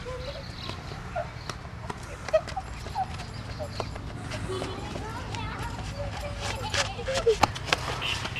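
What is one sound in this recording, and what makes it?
Footsteps scuffle on pavement outdoors.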